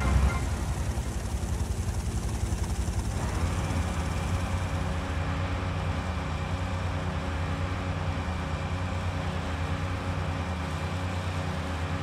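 Water splashes and churns behind a speedboat.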